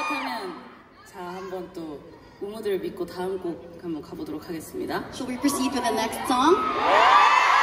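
A young woman speaks into a microphone through loudspeakers.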